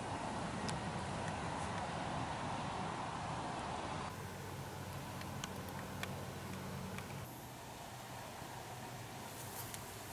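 A young man speaks quietly close by.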